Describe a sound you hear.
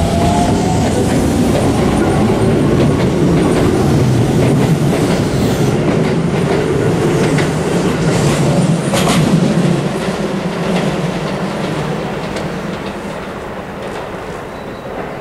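A train rumbles and hums while standing and then pulling away.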